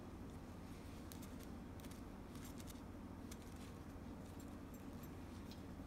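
Satin ribbon rustles between fingers.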